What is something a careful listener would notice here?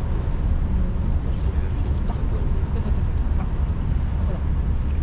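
Wind blows hard and rumbles outdoors.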